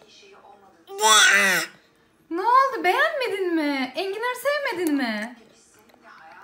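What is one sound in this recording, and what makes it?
A baby vocalizes close by.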